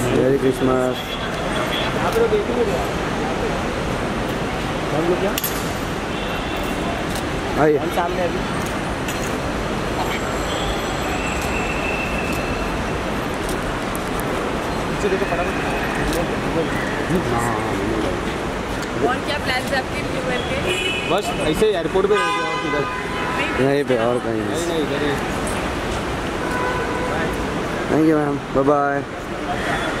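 Photographers call out loudly to a young woman from close by.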